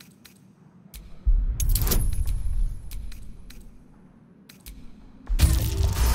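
A die rolls and rattles.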